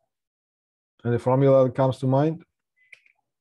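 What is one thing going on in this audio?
A middle-aged man speaks briefly and calmly into a close microphone.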